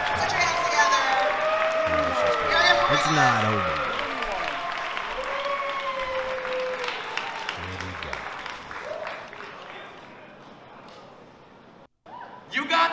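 A big band plays lively swing music in a large hall.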